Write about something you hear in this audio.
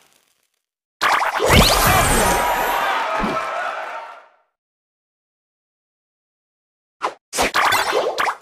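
Bright game chimes and whooshes ring out as pieces match and scores tally.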